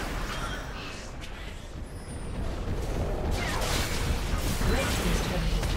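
Video game spell effects and weapon strikes clash in a battle.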